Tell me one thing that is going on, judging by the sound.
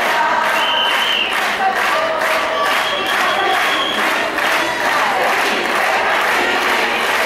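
A large outdoor crowd of protesters chants and shouts together loudly.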